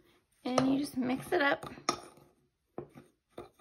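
A metal spoon scrapes and clinks against a plastic bowl.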